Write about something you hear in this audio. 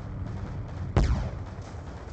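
A sniper rifle fires a single loud, sharp shot.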